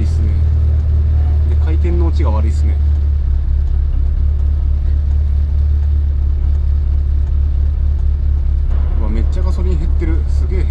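A car engine drones low and steady inside the car.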